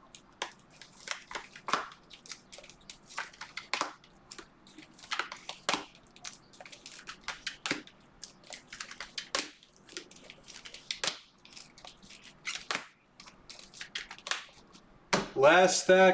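Plastic card sleeves rustle and crinkle close by.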